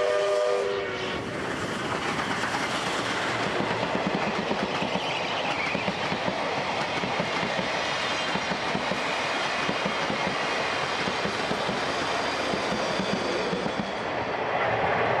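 Train carriages rumble and clatter rhythmically over the rails.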